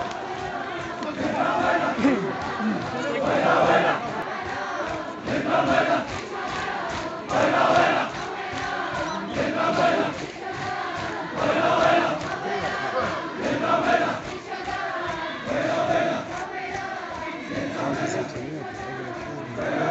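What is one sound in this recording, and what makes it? A large crowd of men chants loudly together in a rhythmic refrain outdoors.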